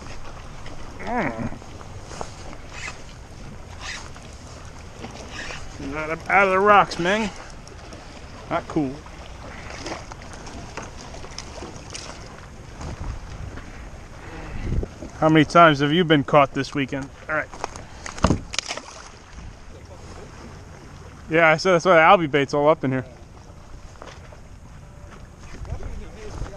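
Small waves lap against a kayak.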